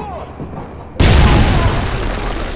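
A rocket explodes in a room with a heavy boom.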